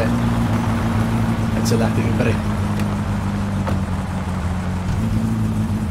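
A car door opens and shuts.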